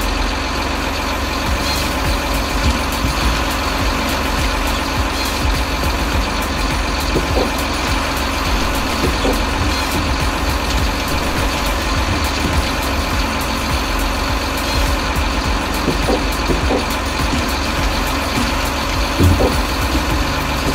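A hydraulic crane arm whines as it swings a log.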